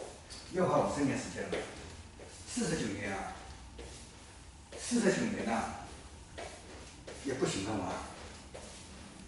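A man speaks calmly in an echoing room.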